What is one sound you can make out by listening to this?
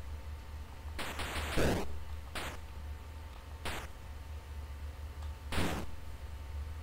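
A retro video game plays short electronic sound effects.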